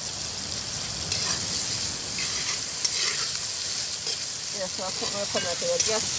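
A metal spoon scrapes and clinks against a metal pot.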